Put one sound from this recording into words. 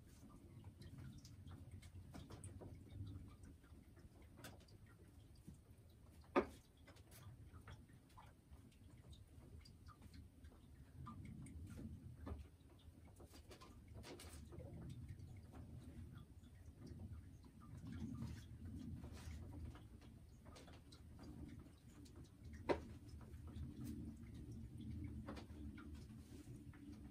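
A hen clucks softly and low, close by.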